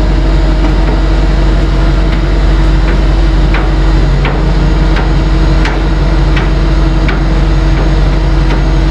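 A car rolls slowly up a metal ramp.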